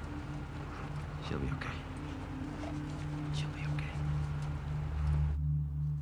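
A man answers calmly and reassuringly.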